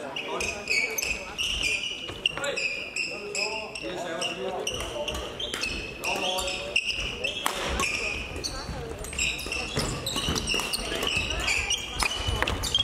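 Shoes squeak sharply on a hard court floor in a large echoing hall.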